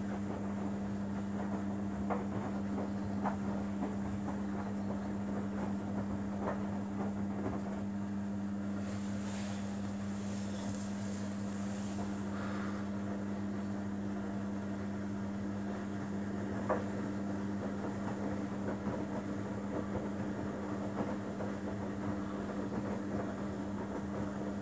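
A front-loading washing machine hums as it runs.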